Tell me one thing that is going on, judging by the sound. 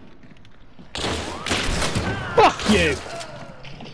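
A gun fires with a loud blast nearby.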